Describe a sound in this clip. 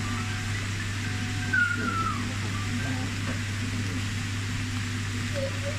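Vegetables sizzle and crackle softly in a hot pan.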